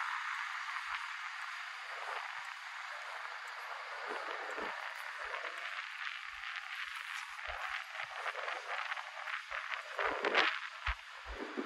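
Footsteps tap on a paved street nearby.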